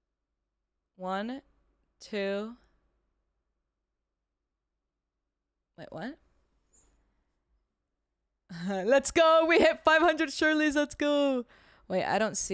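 A young woman speaks close into a microphone, with animation, in short bursts.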